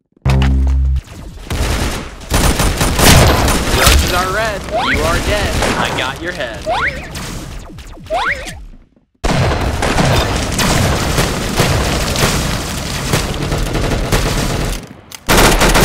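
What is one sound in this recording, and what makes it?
Gunshots crack rapidly in quick bursts.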